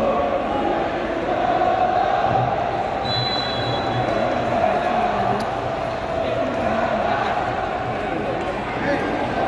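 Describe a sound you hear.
A large stadium crowd chants and cheers loudly in a big open space.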